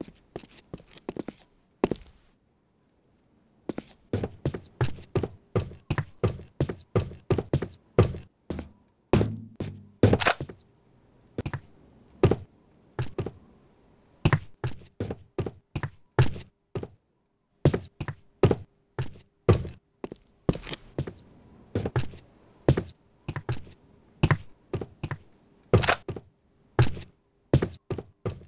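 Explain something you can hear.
Footsteps thud steadily across wooden boards.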